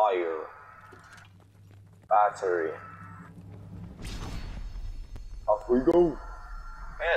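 A young man talks with animation, close into a headset microphone, in short bursts.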